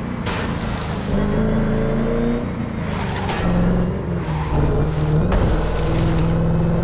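Tyres rumble and skid over rough grass.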